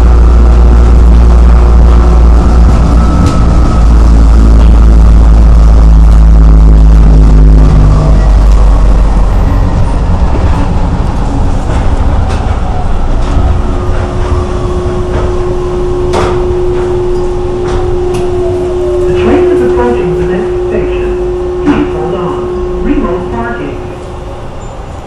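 Train wheels rumble and clatter along the track.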